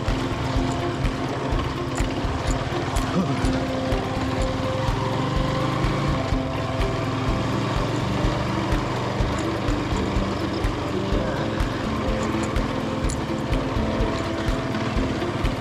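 A motorcycle rattles and thumps over a bumpy road.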